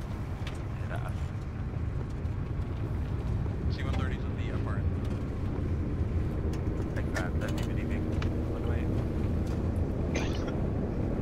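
A vehicle engine rumbles low and steadily.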